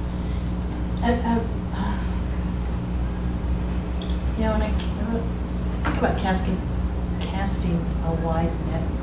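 Adults talk calmly at a distance in a room with some echo.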